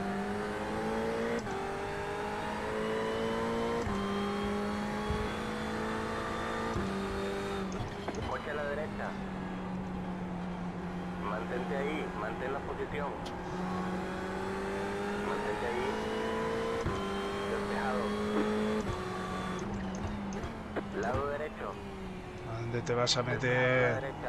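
A racing car engine roars steadily, shifting up and down through the gears.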